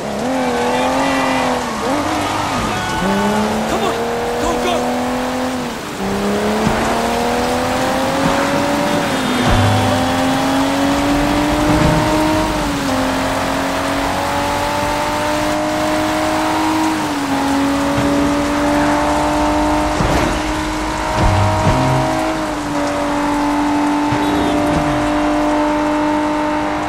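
A car engine revs hard, rising and dropping as the gears shift.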